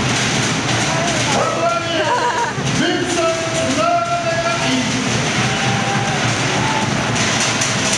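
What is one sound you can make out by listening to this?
Performers chant and shout on stage.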